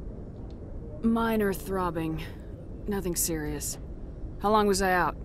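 A young woman answers calmly.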